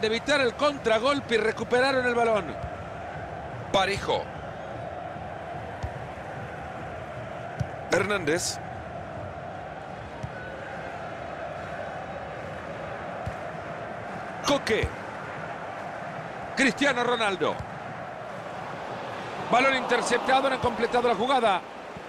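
A large stadium crowd murmurs and cheers steadily in the distance.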